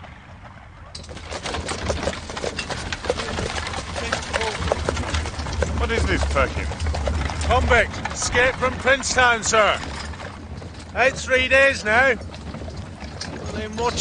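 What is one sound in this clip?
Carriage wheels rattle on a dirt track.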